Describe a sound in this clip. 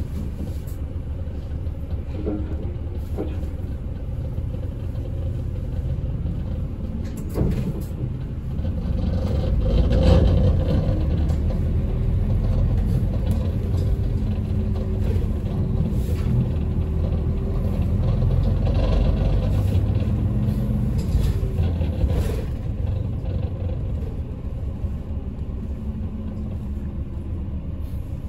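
A vehicle engine rumbles steadily while driving, growing louder as it picks up speed.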